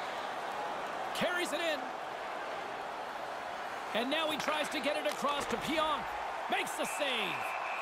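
A stick smacks a puck.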